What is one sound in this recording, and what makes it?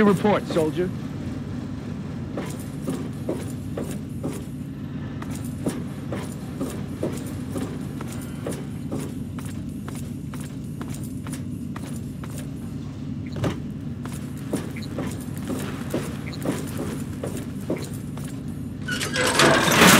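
Footsteps clank steadily on a metal floor.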